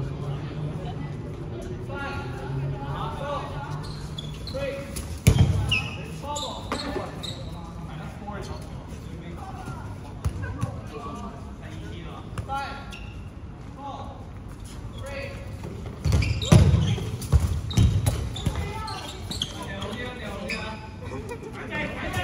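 Young players shout and call out to each other in an echoing hall.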